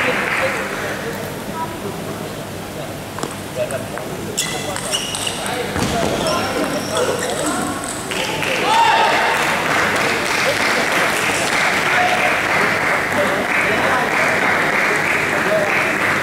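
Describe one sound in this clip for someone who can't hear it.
A ping-pong ball clicks back and forth on paddles and a table, echoing in a large hall.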